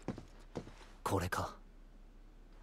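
A young man speaks briefly and flatly.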